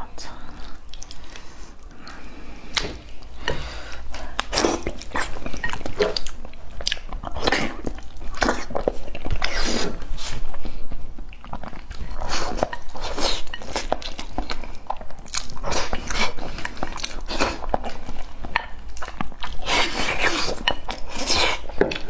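A young man chews and slurps food loudly and close to a microphone.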